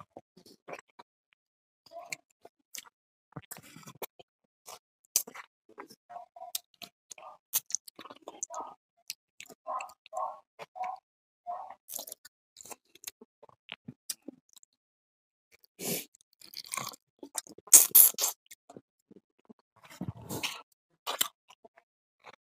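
A man chews and smacks his lips loudly, close to a microphone.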